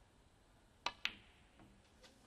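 Snooker balls click together.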